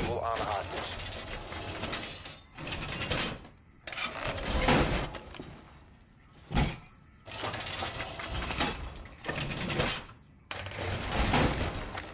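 A heavy metal panel clanks and scrapes into place against a wall.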